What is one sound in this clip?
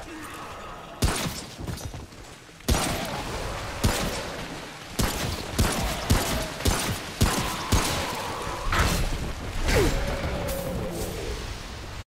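Gunshots fire in sharp, repeated bursts.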